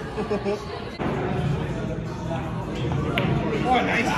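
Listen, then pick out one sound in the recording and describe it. A billiard ball rolls softly across the table.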